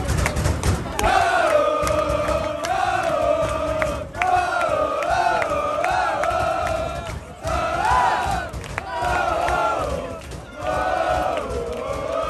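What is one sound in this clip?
A large crowd chants in unison, loud and close by.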